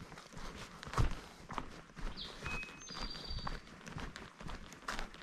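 Footsteps crunch on dry leaves and dirt along a trail.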